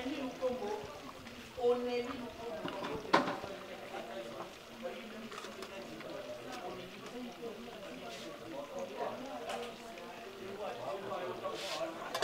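A wooden spoon scrapes and stirs in a metal pot.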